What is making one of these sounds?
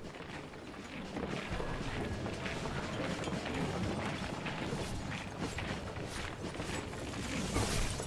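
Magic spells crackle and clash in a fierce fantasy battle.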